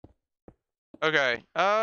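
A man speaks loudly and with animation into a close microphone.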